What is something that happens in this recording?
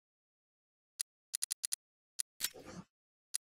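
Menu selections click and beep in quick succession.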